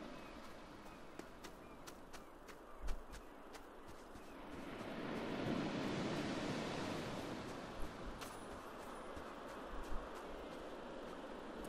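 Waves wash gently onto a shore.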